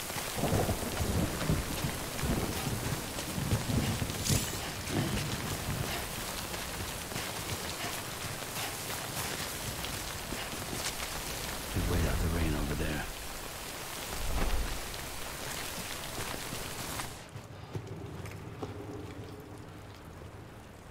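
Footsteps tread on grass and rock.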